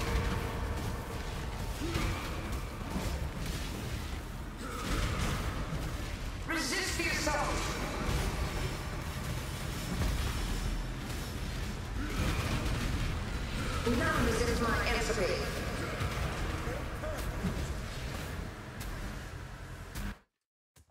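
Fiery spell blasts crackle and boom in quick succession.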